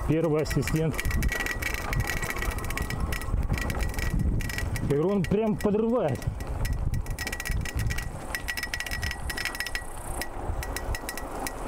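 A bicycle rattles and clatters over a bumpy dirt track.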